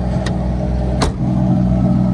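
A car boot lid slams shut with a thud.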